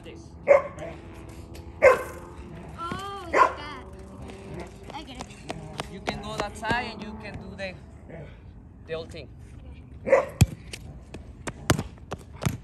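A soccer ball thumps as it is kicked on concrete.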